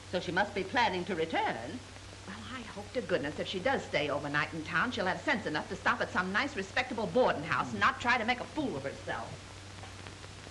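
A second woman answers calmly, close by.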